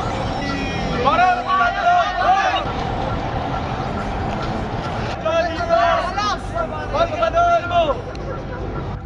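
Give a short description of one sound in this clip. Teenage boys shout and cheer together nearby.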